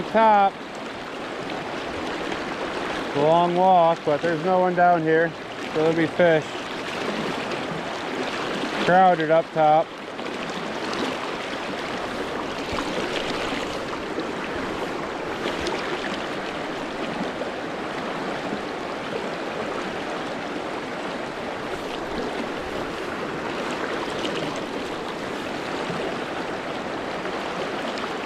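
A river rushes and splashes steadily over rocks nearby.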